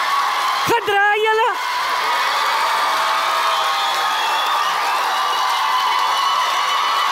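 A large audience cheers and applauds.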